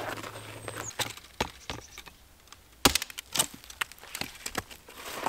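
An axe chops into wood with sharp thuds.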